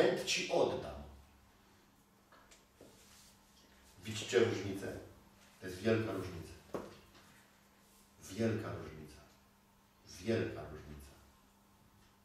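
A middle-aged man speaks calmly in short phrases, heard from across an echoing room.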